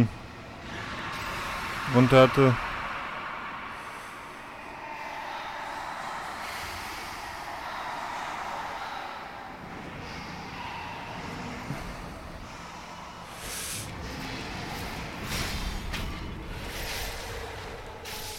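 Ghostly energy bursts whoosh and crackle.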